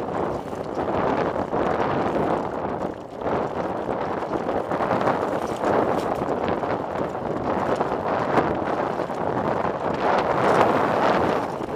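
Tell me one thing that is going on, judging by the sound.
Footsteps crunch on a rocky dirt trail.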